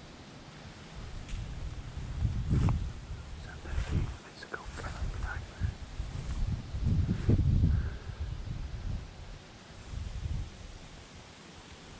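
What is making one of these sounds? Wind gusts loudly outdoors, rustling through bare trees.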